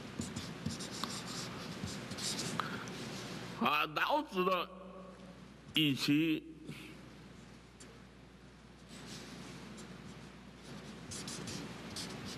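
A felt-tip marker scratches and squeaks across paper.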